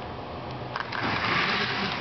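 A model train rumbles along its track.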